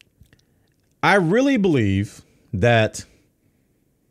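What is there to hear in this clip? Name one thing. A middle-aged man speaks loudly and with animation close to a microphone.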